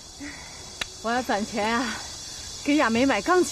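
A young woman answers calmly and cheerfully, close by.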